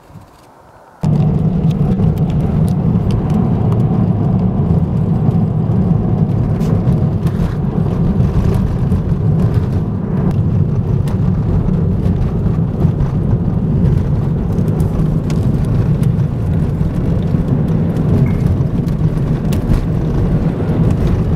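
Tyres rumble and crunch over a snowy road.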